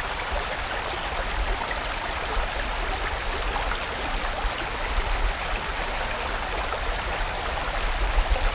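A fast stream rushes and splashes over rocks.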